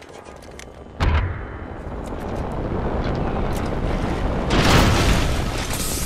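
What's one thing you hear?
A smoke canister bursts and smoke hisses loudly as it spreads.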